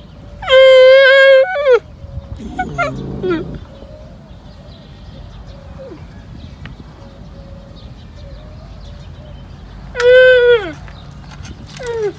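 A camel calf bleats loudly in high, wavering calls.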